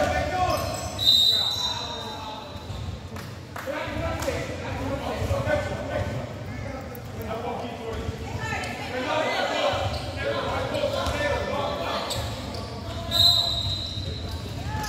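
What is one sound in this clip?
A referee blows a short whistle.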